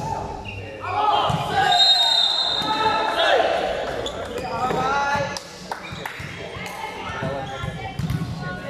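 Young girls shout and cheer loudly in a large echoing hall.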